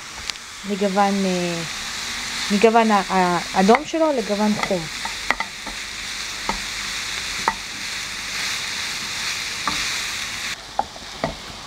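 Minced meat sizzles in a hot pan.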